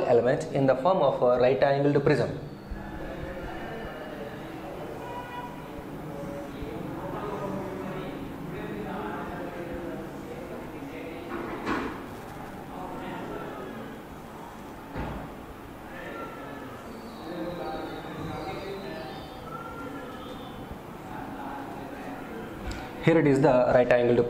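A man speaks calmly and explains, close to a microphone.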